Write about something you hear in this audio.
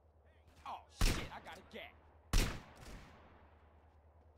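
Pistol shots ring out with a short echo.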